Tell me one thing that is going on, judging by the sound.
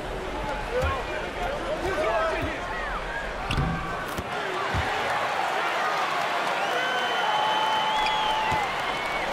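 Basketball shoes squeak sharply on the court.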